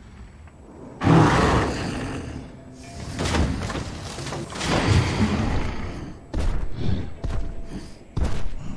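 Loud explosions boom and rumble one after another.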